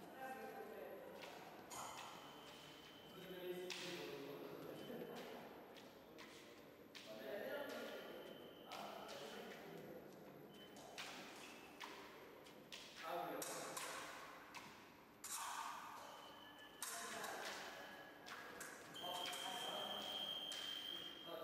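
Fencers' feet stamp and shuffle on the floor.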